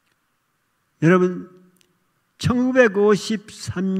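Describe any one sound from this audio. An elderly man speaks steadily through a microphone.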